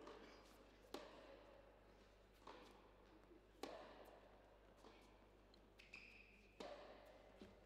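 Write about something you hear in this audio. A racket strikes a tennis ball with sharp pops.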